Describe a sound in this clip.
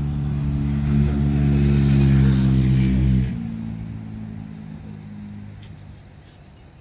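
A car drives past on a nearby road and fades away.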